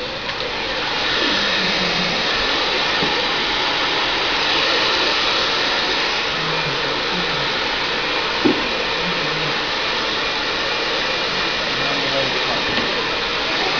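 A hair dryer blows with a steady whoosh.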